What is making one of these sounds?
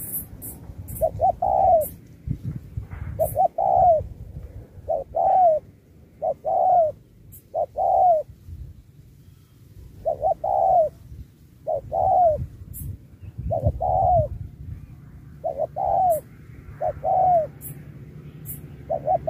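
Doves coo repeatedly in short, rising and falling calls close by.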